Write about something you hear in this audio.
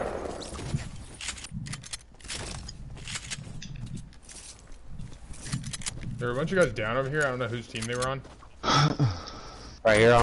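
Quick footsteps patter across pavement and grass.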